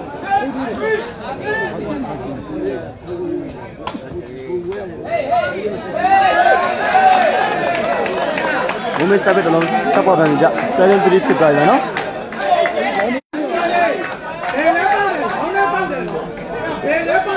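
A large outdoor crowd shouts and cheers with excitement.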